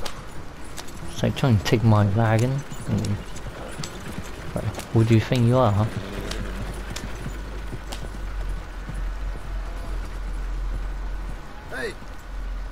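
Wagon wheels rumble and creak over a dirt track.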